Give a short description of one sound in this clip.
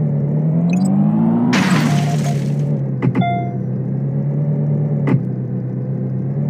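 A car engine hums steadily at low revs.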